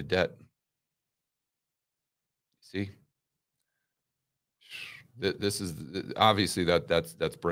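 A middle-aged man speaks calmly into a microphone, close up, with long pauses.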